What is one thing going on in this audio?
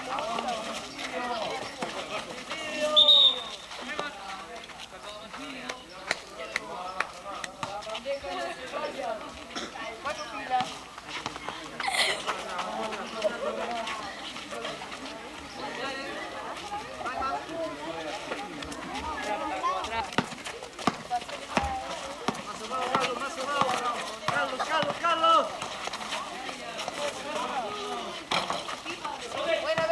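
Young men shout and call out outdoors.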